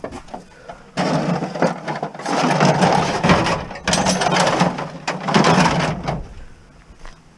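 Stiff plastic pieces scrape and clatter as they are pushed into a car boot.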